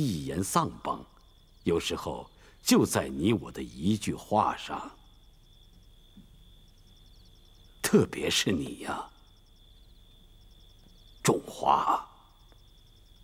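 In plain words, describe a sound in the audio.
An elderly man speaks slowly and calmly, close by.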